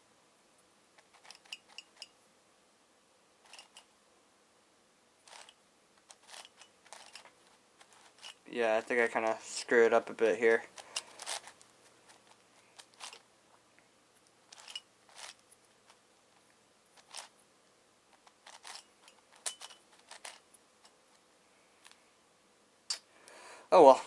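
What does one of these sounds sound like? A puzzle cube clicks and clacks as it is twisted close by.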